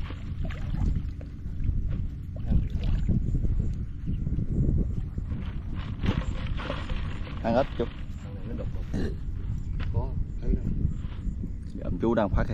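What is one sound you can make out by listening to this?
Water sloshes and splashes as a man wades through it.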